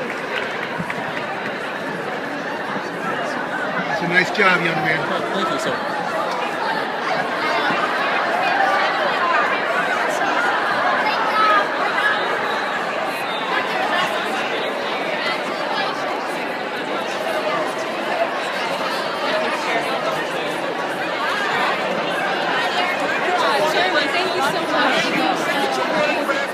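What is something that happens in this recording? A large crowd of men and women chatters loudly nearby, in a room with some echo.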